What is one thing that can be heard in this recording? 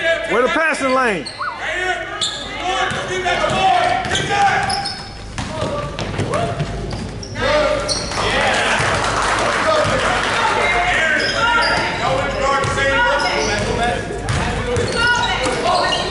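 A crowd of young spectators chatters and calls out nearby, echoing in a large hall.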